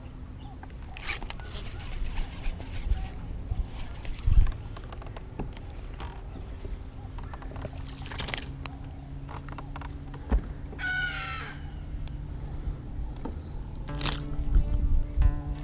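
A fishing reel clicks and whirs as line is cast and wound in.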